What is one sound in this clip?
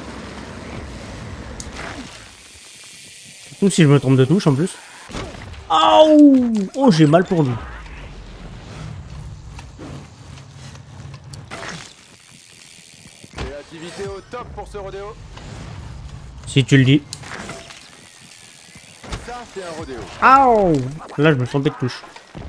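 Bicycle tyres crunch over loose dirt.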